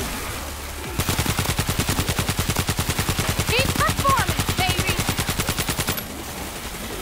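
A rifle fires in rapid, steady bursts.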